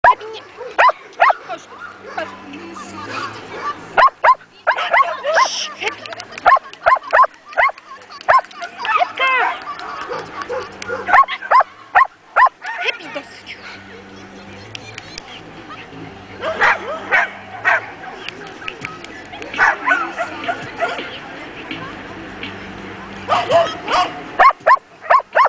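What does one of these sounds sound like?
A woman calls out commands to a dog outdoors.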